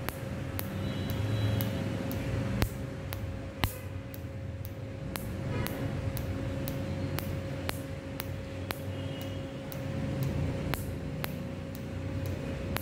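A tattoo removal laser fires in sharp, regular snapping clicks.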